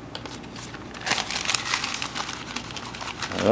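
A paper towel rustles and rubs over smooth plastic.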